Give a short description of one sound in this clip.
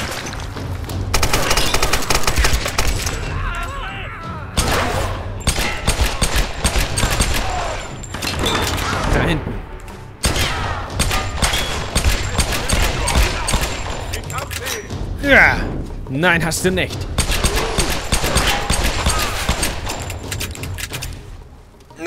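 Gunshots fire rapidly and loudly.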